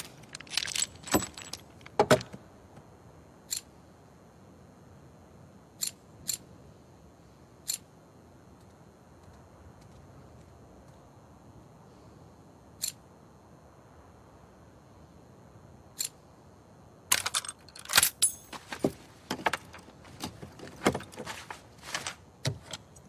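Metal parts of a revolver click and clatter as they are handled.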